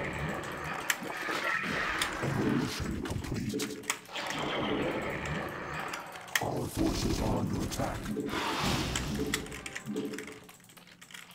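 Gunfire and explosions sound in a game battle.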